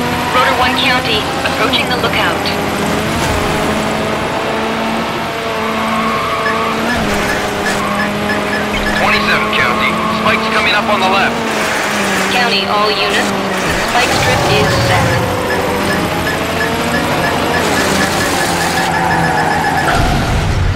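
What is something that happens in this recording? A game car engine roars steadily and shifts pitch as it speeds up and slows down.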